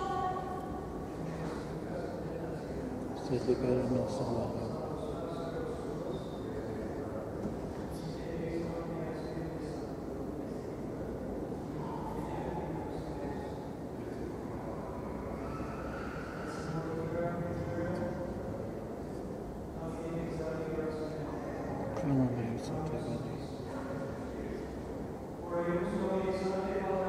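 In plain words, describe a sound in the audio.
A man chants steadily in a reverberant space.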